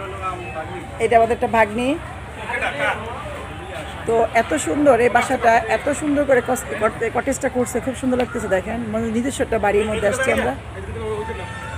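Men talk with animation nearby, outdoors.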